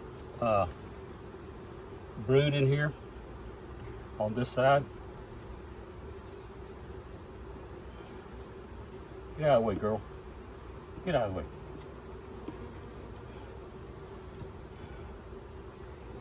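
Bees hum steadily around an open hive.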